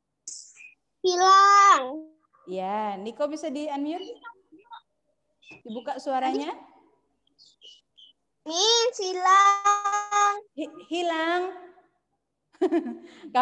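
Young children speak and call out loudly through an online call.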